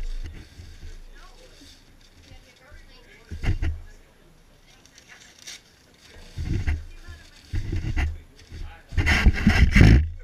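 Crumpled paper scrapes and rustles on the floor.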